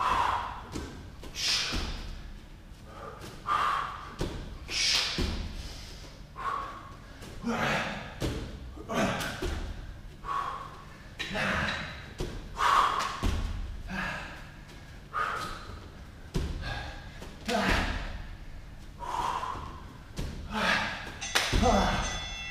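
Bare feet land with dull thuds on a padded mat.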